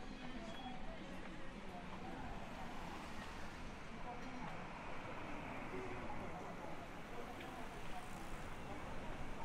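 Footsteps tap on a paved sidewalk outdoors.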